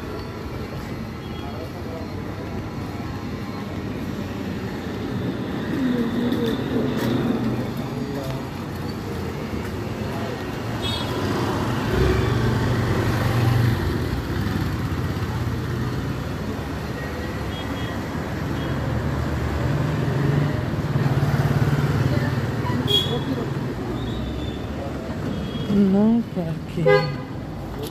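Traffic hums steadily along a street outdoors.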